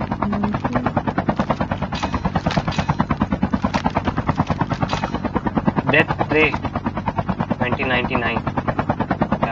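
A helicopter's rotor thumps rapidly and steadily.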